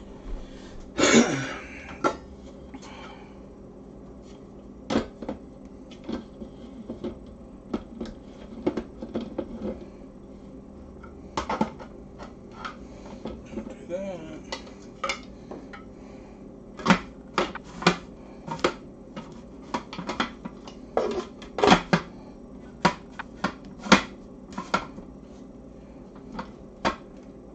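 Plastic parts of a food processor click and knock as they are fitted together.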